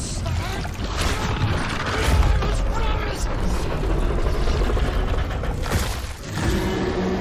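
A large creature snarls and growls.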